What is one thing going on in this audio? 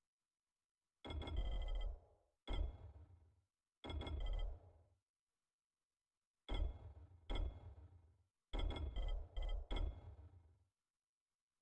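Short chiming clicks sound as menu items are selected, each with a brief fading ring.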